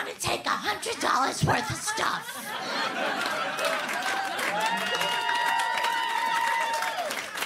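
A young woman speaks with animation through a microphone.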